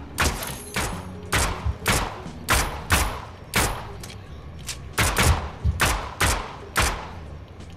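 A pistol fires sharp shots again and again, with short echoes.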